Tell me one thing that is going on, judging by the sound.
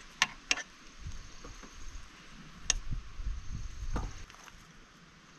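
A wrench ratchets in short bursts.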